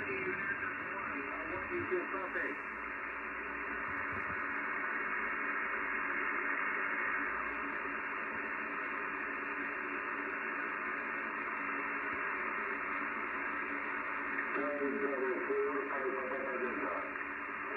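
Static hisses steadily from a radio receiver's loudspeaker.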